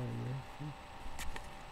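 A young man speaks briefly and quietly, close to a microphone.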